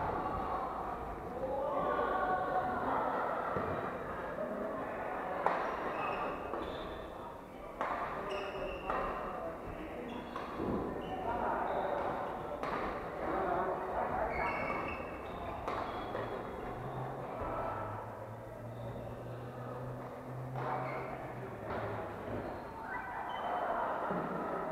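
Adults chatter and call out across the hall.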